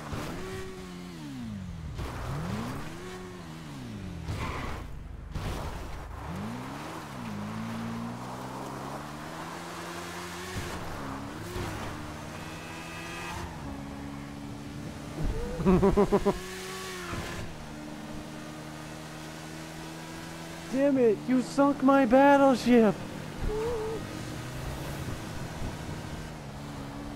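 A motorcycle engine revs and drones, rising and falling in pitch.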